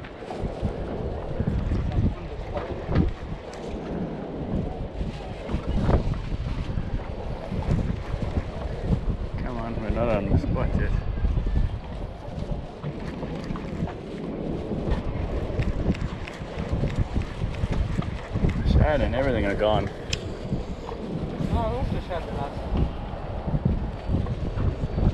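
Water slaps and laps against a small boat's hull.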